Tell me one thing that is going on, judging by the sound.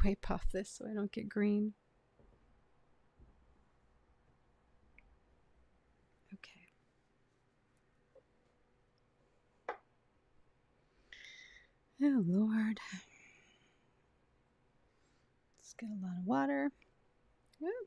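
A young woman speaks calmly and cheerfully close to a microphone.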